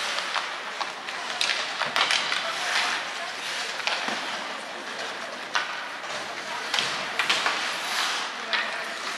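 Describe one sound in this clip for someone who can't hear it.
Hockey sticks and pucks clack sharply on the ice.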